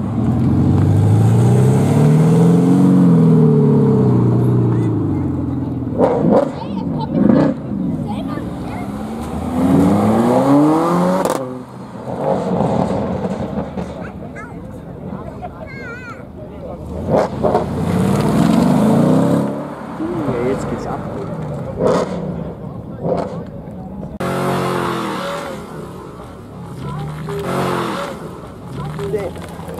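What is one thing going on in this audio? A car engine revs hard and roars past.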